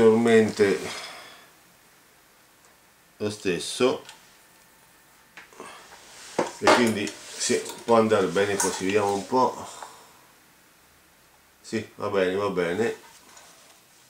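A man speaks calmly close to the microphone, in short bursts with pauses.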